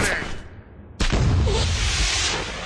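A smoke grenade bursts open and hisses out smoke.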